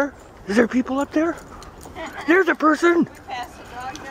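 A woman calls out in a high, excited voice nearby.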